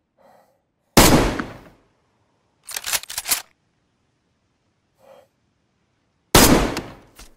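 A rifle fires loud, sharp shots that echo briefly.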